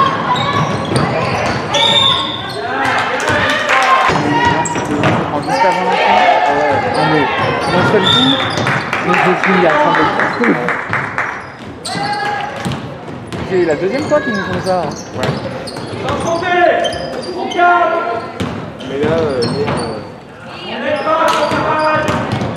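Basketball shoes squeak sharply on a hard court.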